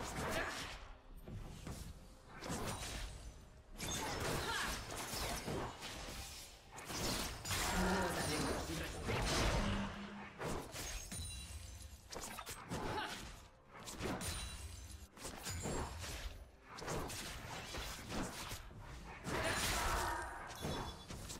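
Game spell effects crackle and blast in a busy fight.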